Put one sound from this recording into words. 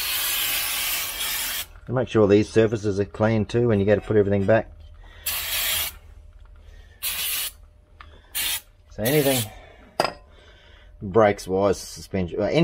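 An aerosol can sprays in short, loud hissing bursts.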